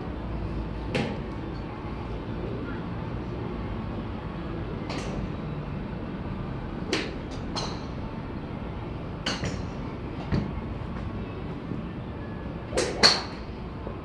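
A golf club strikes a ball off a hitting mat.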